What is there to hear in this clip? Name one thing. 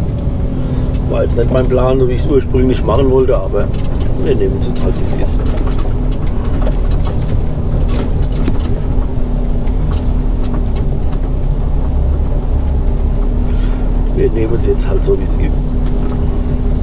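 A middle-aged man talks calmly close by.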